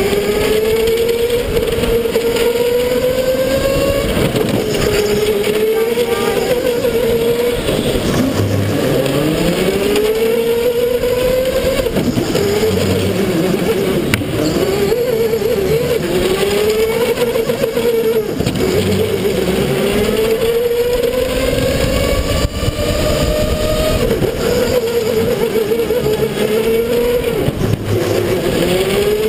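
A small kart engine whines loudly close by, rising and falling in pitch as it speeds up and slows down.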